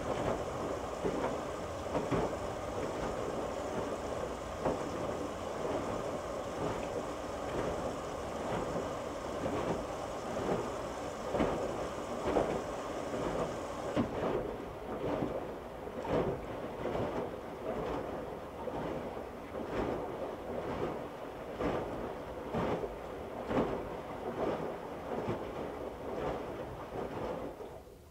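A washing machine drum turns with a steady hum.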